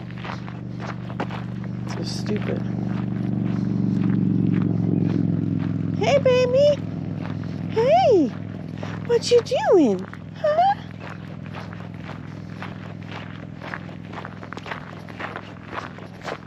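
Tyres crunch steadily over gravel.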